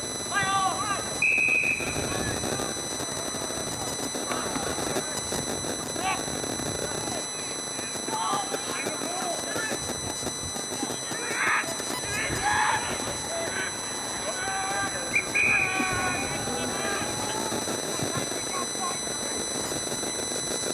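A crowd of spectators calls out and cheers from the sideline outdoors.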